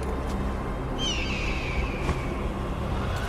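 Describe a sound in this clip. An eagle screeches overhead.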